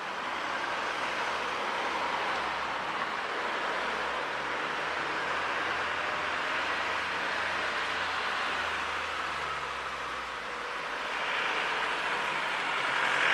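Wind rushes steadily past, outdoors on the move.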